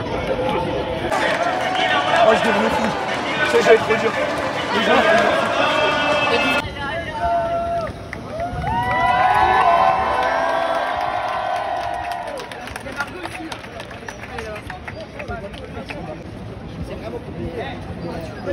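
A crowd shouts and chants loudly in a large echoing arena.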